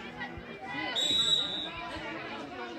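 A referee's whistle blows a short sharp blast.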